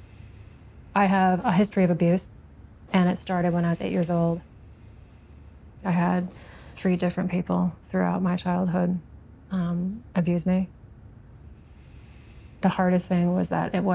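A woman speaks softly close by.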